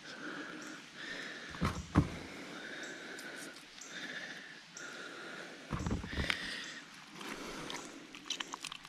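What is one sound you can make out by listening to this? Wet fish flesh squelches as hands handle it.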